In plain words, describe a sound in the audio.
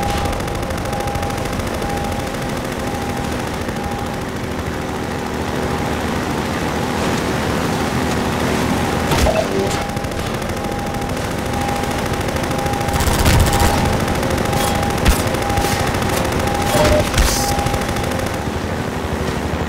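An engine hums steadily as a vehicle drives over rough ground and water.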